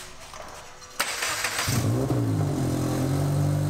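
A car engine cranks and starts with a burst.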